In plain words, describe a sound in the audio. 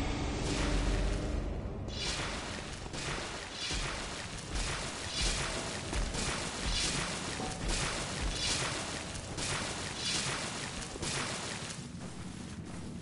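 Footsteps run quickly over stone and dirt.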